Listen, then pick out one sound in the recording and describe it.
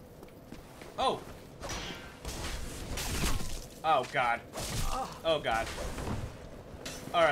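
Metal weapons clash and thud in a sword fight.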